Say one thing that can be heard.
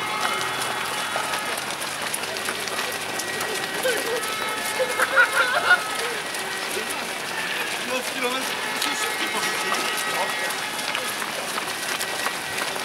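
Many runners' footsteps patter and splash on a wet road.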